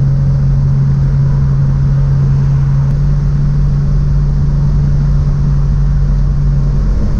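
A car engine drones steadily from inside the car.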